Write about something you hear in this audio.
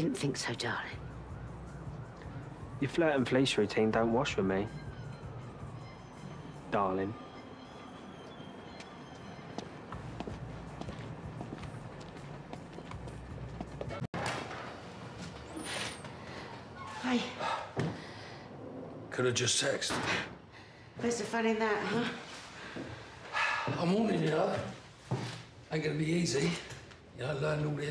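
A middle-aged woman speaks nearby.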